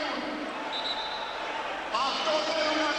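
A large crowd shouts and murmurs in an echoing arena.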